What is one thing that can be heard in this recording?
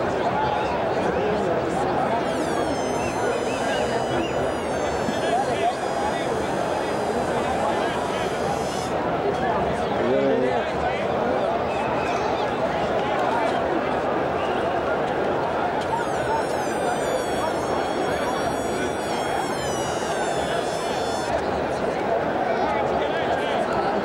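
A large stadium crowd chatters and cheers steadily all around.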